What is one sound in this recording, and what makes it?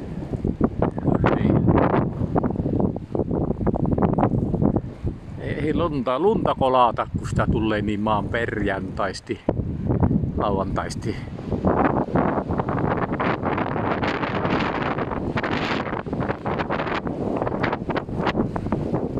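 Strong wind gusts and buffets the microphone outdoors.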